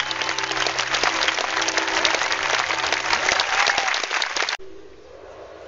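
A large outdoor crowd applauds and cheers.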